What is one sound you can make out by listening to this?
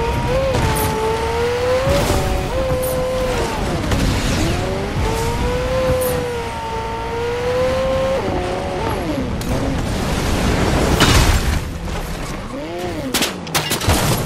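A car engine revs and whines as it speeds along.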